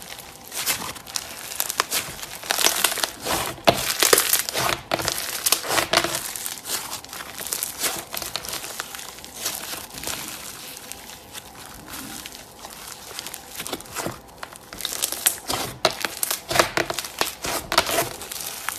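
Squishy foam slime crackles and pops as hands squeeze and stretch it, close up.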